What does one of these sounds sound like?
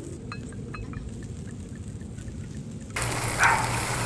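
Liquid pours from a bottle into a metal cup.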